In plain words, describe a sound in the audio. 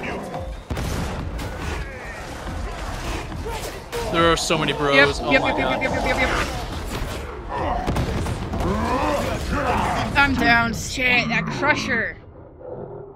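Explosions boom and gunfire rattles.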